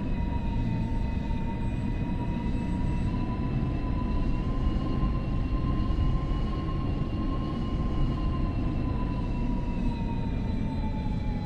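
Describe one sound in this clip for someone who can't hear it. Train wheels rumble low on the rails.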